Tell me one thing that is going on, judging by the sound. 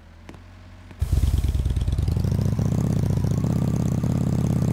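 A motorbike engine revs and hums loudly.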